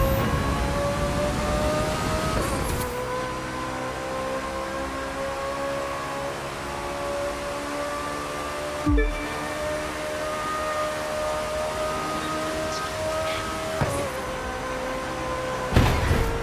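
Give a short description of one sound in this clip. A racing car engine roars at high speed, its pitch climbing steadily and dipping briefly with each gear change.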